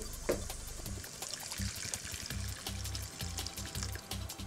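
Water pours into a pot.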